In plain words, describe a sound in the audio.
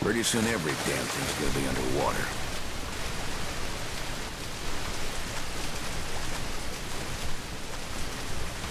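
Water splashes and sloshes as someone swims.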